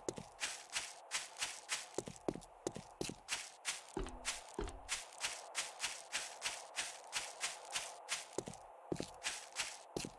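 Footsteps rustle quickly through grass at a steady pace.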